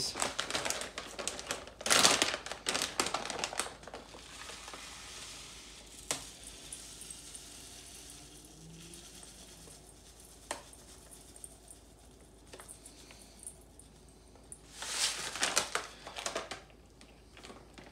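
A paper bag crinkles and rustles in someone's hands.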